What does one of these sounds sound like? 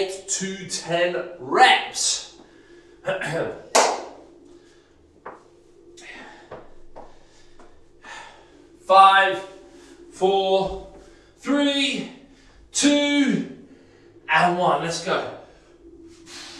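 A man talks with energy, close to a microphone.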